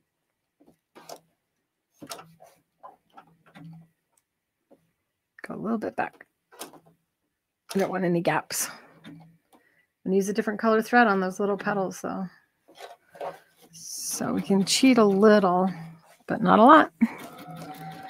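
A sewing machine hums and stitches in short bursts.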